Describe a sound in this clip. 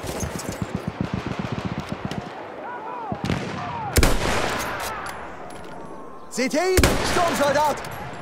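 A rifle fires single loud shots close by.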